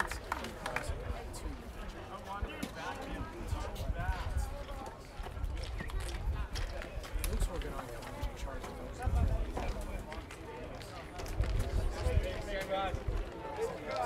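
Wind blows across the microphone.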